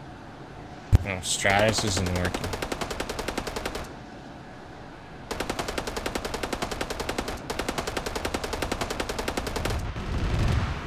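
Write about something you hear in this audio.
A rapid-fire cannon fires in long, fast bursts.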